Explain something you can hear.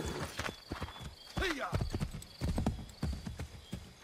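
A horse's hooves clop on a dirt path.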